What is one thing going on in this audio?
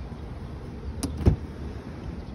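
A car door clicks open with a sharp thunk.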